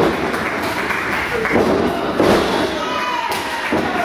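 A body slams onto a wrestling mat with a loud thud.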